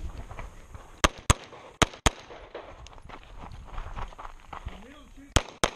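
Pistol shots crack sharply, one after another, outdoors.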